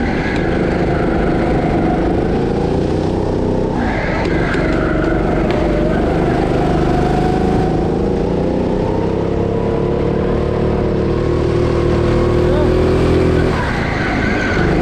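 A go-kart motor whines, rising and falling in pitch as it speeds up and slows around the corners.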